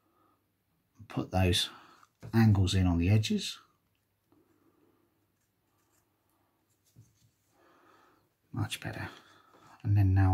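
A knife scrapes and shaves thin curls from wood.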